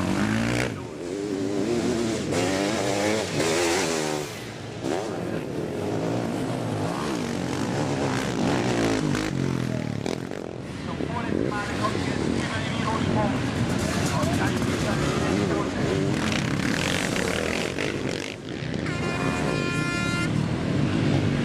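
Motorcycle engines rev loudly and roar past, rising and falling in pitch.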